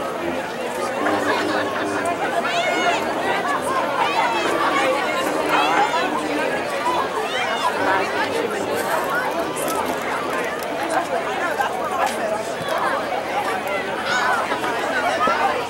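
A crowd of people chatters and calls out nearby.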